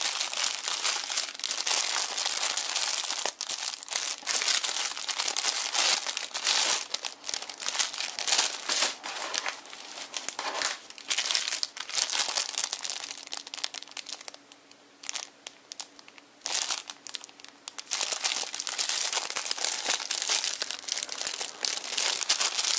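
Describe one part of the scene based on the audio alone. Plastic packaging crinkles and rustles up close.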